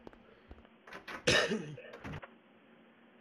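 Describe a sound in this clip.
A door creaks open and thumps.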